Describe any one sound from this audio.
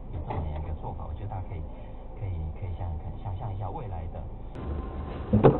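A car engine hums inside a vehicle.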